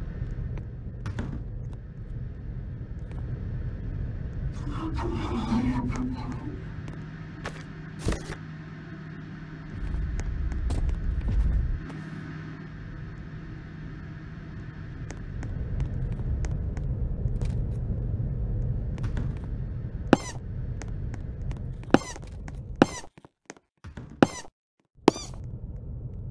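Footsteps thud softly on a floor.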